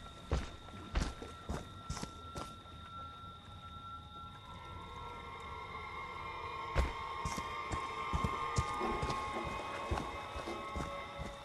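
Heavy footsteps crunch on dry leaves.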